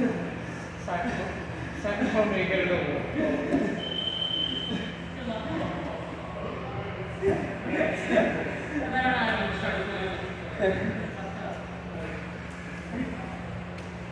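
A man talks nearby in a slightly echoing room.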